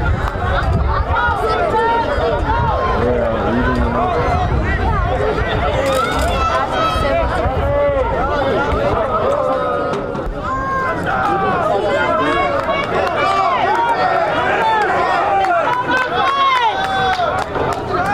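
Many young men and men shout and call out across an open field.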